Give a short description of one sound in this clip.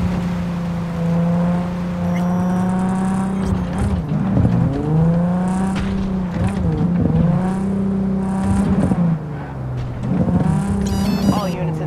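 A car engine roars steadily, its pitch dipping and climbing again as it changes gear.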